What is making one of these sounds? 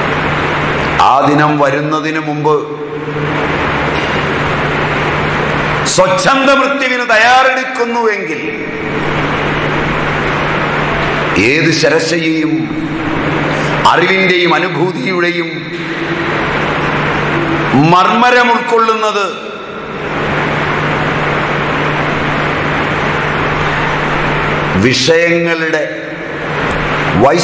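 A middle-aged man speaks calmly in short phrases, close by, with long pauses between them.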